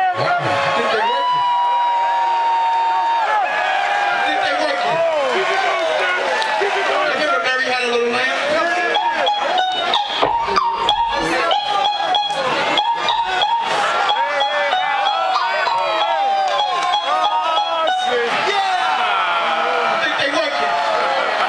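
A man raps loudly into a microphone over a loudspeaker.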